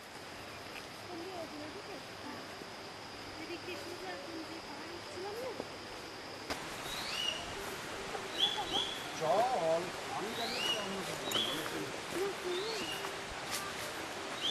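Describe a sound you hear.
People talk quietly at a distance, outdoors.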